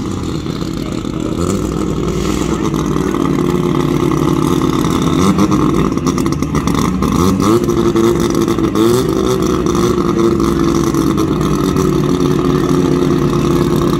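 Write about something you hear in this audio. A loud race car engine idles roughly and revs up in short bursts.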